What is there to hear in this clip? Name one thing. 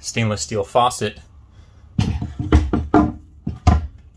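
A wooden board knocks softly as it is set down.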